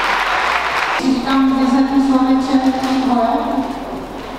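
A woman speaks into a microphone, heard through loudspeakers in a large echoing hall.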